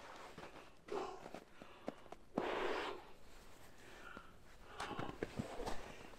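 A man blows into his cupped hands.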